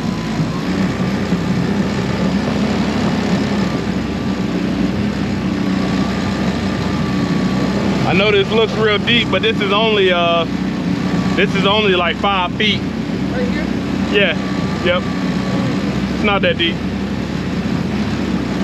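Water splashes and churns against a moving boat's hull.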